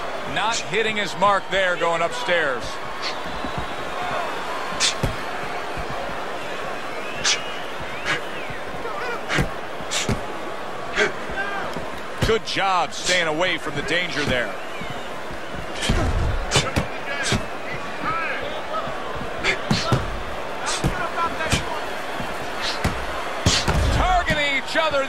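Punches thud against a body in quick bursts.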